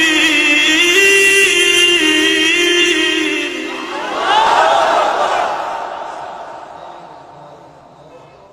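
A man sings and wails emotionally into a microphone, heard through loudspeakers in a reverberant space.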